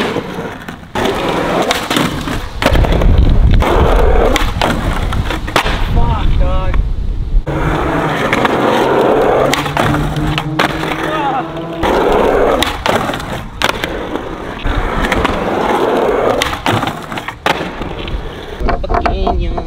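A skateboard deck snaps and clatters as it lands.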